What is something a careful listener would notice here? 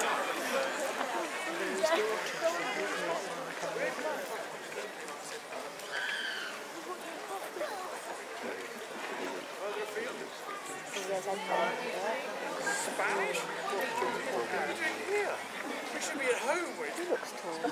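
An elderly man talks calmly with people close by.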